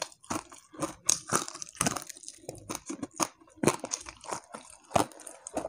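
A young man chews crunchy food loudly and smacks his lips close to a microphone.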